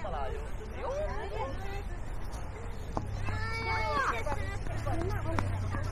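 A young woman chats nearby outdoors.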